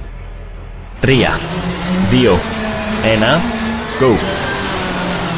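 A car engine revs up and down sharply, again and again.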